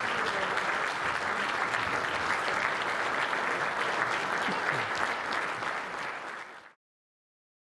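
An audience applauds steadily in a large room, then the sound cuts off.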